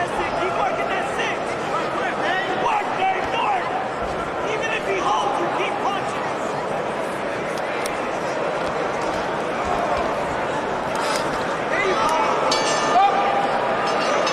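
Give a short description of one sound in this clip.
Boxing gloves thud against bodies in a clinch.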